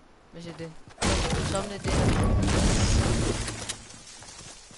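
A pickaxe strikes wood with hard knocks.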